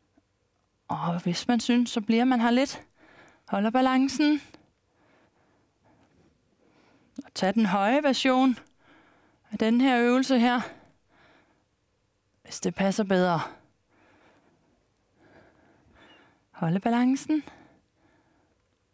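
A woman calmly gives exercise instructions in short phrases, close to a microphone.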